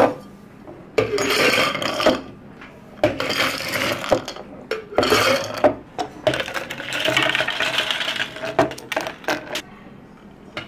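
Ice cubes rattle and clatter as they are scooped into glasses.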